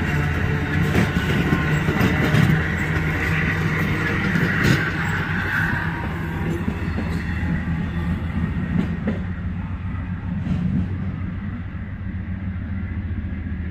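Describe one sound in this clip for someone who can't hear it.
A passenger train rumbles past close by and slowly fades into the distance.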